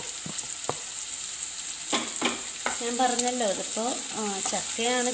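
Onions sizzle in a hot pan.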